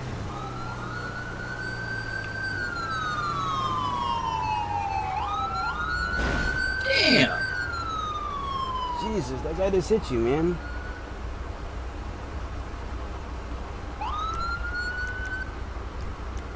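A police siren wails and rises and falls in pitch nearby.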